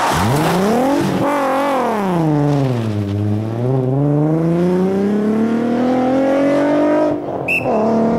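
A rally car's engine revs hard as it accelerates away through the gears.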